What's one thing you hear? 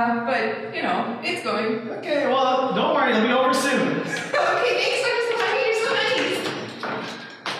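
A young man speaks reassuringly nearby.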